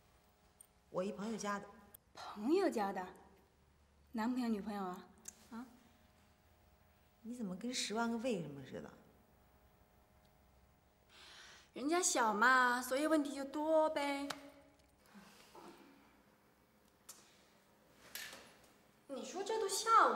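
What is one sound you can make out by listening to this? A second young woman answers playfully, close by.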